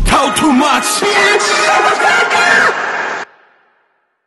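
Young men rap and shout loudly.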